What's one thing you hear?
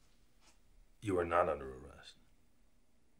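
A middle-aged man speaks in a low voice.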